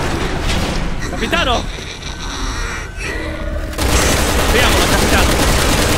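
A creature growls and shrieks.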